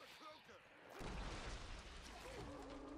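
A shotgun fires loudly with a booming blast.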